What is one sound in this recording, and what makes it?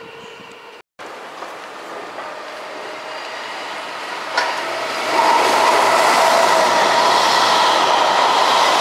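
A train rolls in and passes close by with a loud rushing roar.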